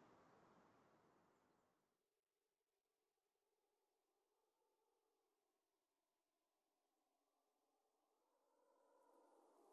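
Wind rushes past steadily, louder at the start and again toward the end.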